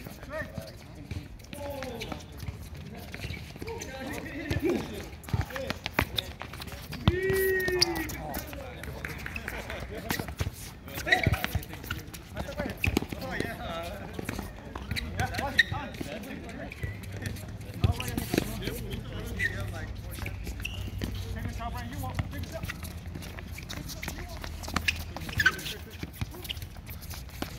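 Men shout and call out to each other outdoors during a game.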